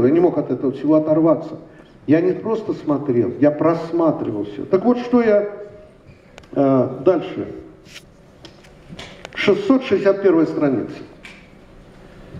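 An elderly man reads aloud into a microphone.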